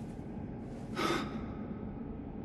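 An elderly man gasps weakly, close by.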